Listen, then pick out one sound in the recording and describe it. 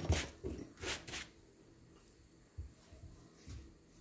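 A clay figure is set down on a table with a soft thud.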